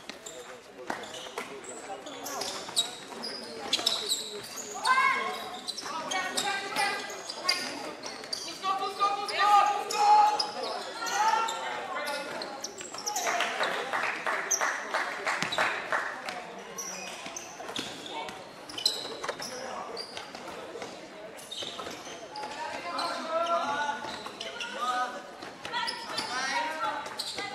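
Sports shoes squeak sharply on a hall floor.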